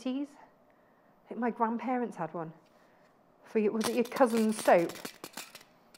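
A woman speaks calmly and clearly into a close microphone.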